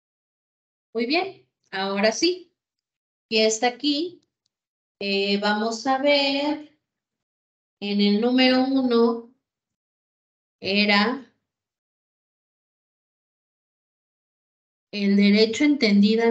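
A woman speaks calmly over an online call, in short phrases with pauses.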